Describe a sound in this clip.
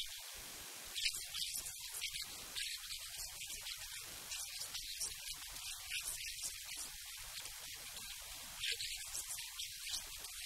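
A young woman speaks calmly into a handheld microphone.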